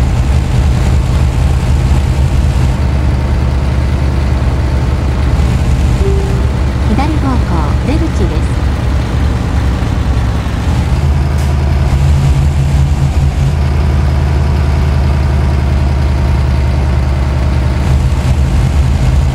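A truck engine drones steadily with a low rumble.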